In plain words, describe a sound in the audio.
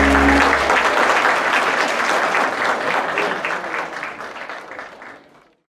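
A crowd applauds and cheers loudly in a large hall, then fades out.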